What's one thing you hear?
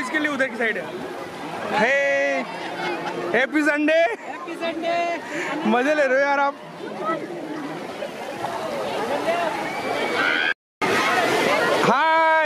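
Water splashes as people play in a pool.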